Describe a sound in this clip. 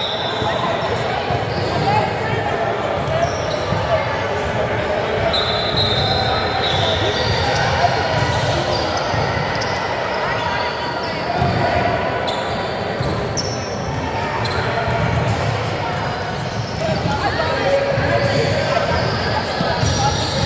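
Sneakers squeak on a hardwood floor in a large echoing gym.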